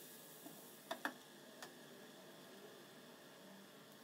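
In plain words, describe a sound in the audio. A glass lid clinks onto a pan.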